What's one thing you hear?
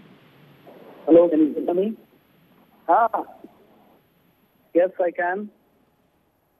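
A man speaks calmly over a microphone in short phrases.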